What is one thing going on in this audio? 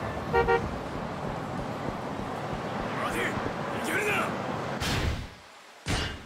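Busy street noise murmurs steadily.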